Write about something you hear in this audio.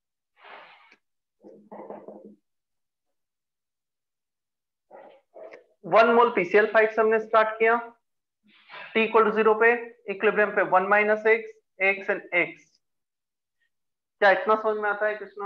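A man speaks calmly into a headset microphone, explaining.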